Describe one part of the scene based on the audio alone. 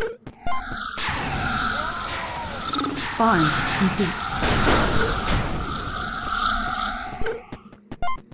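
Loud explosions burst and crackle.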